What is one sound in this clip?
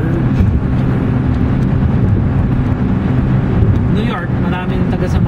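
Tyres roar steadily on the road.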